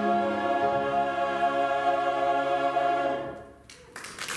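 A choir sings a held chord in an echoing hall.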